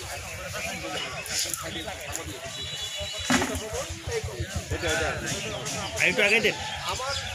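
A crowd of men talks and murmurs outdoors.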